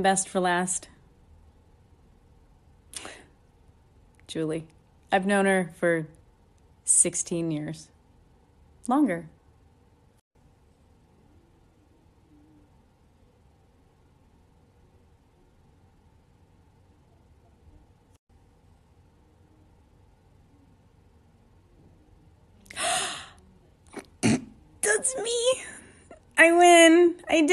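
A young woman speaks close by in short, cheerful bursts.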